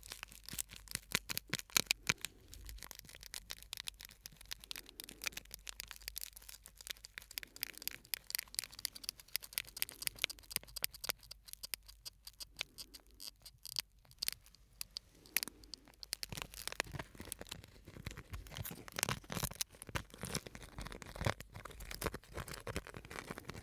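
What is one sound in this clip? Foil crinkles and crackles close to a microphone.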